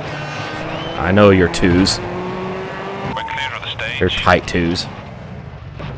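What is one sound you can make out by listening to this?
A young man talks casually through a close microphone.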